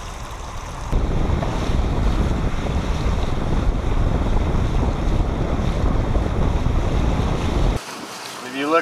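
Tyres splash through shallow water.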